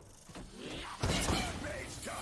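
A weapon fires with a loud burst.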